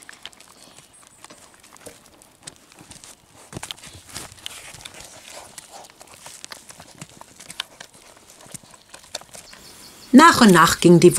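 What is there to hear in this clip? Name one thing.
A lamb suckles and slurps noisily at close range.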